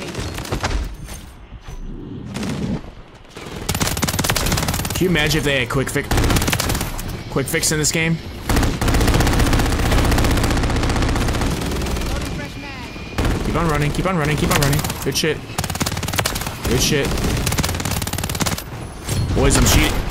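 Gunfire from a game rattles in rapid bursts.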